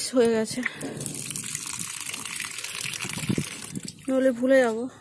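Water gushes from a tap.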